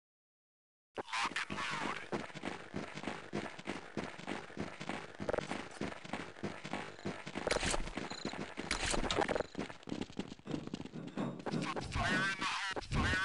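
Several footsteps thud quickly as a group runs over hard ground.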